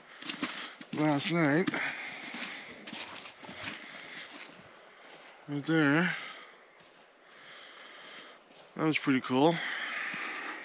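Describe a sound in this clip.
A man speaks close by in short bursts, with pauses between them.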